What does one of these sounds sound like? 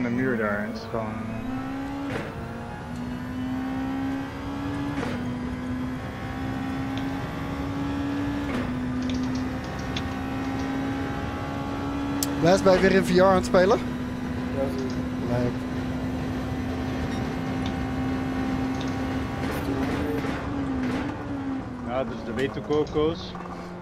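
A racing car engine roars and climbs steadily through the gears, then drops back as the car slows.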